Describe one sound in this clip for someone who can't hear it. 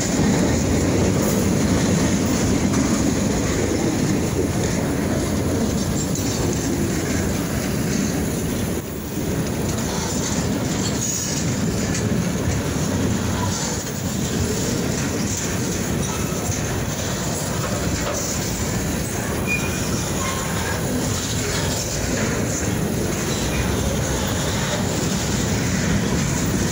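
A long freight train rumbles past close by, its wheels clattering steadily on the rails.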